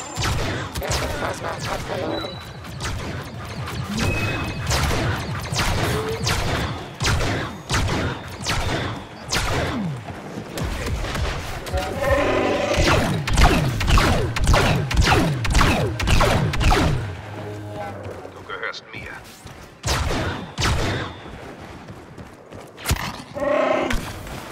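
Blaster guns fire in rapid bursts of sharp zaps.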